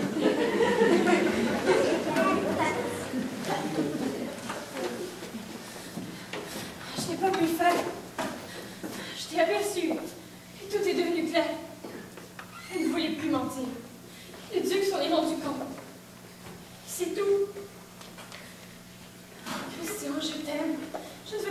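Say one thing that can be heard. A young woman speaks with feeling in a large echoing hall.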